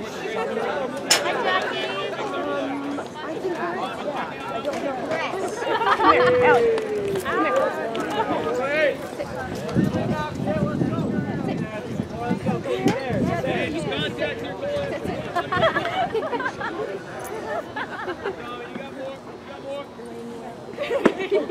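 Adult spectators chat close by.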